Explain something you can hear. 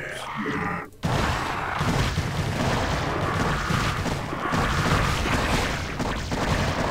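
Creatures screech, hiss and clash in a noisy fight.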